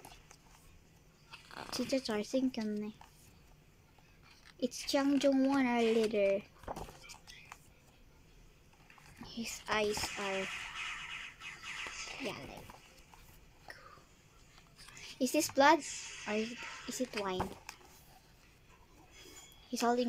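Glossy pages rustle as they are turned by hand.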